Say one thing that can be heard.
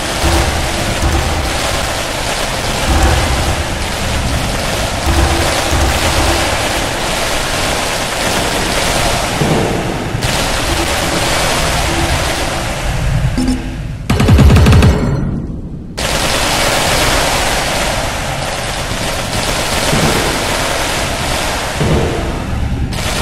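Rapid electric zaps and crackles sound as towers fire in a game.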